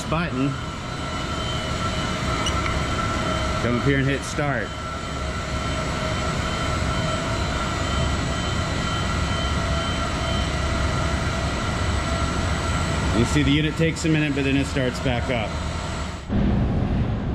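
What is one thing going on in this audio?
A conveyor belt runs with a steady mechanical hum.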